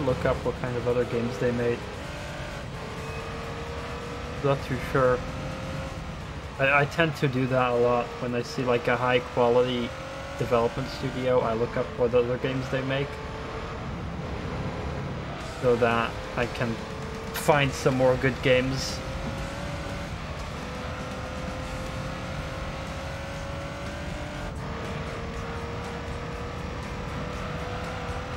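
A racing car engine drones and revs up through the gears.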